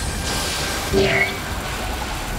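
A sharp burst of a magic strike booms briefly.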